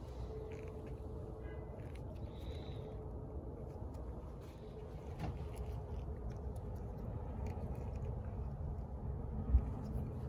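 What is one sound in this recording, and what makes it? A plastic cap clicks as it is handled.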